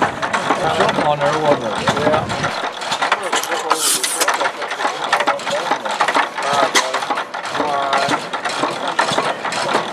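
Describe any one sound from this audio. An old engine chugs and clatters with rapid mechanical knocks.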